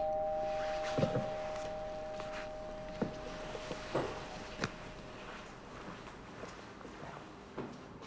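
Footsteps tap across a hard floor.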